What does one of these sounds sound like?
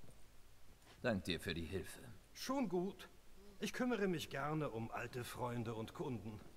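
An elderly man talks in a deep, calm voice.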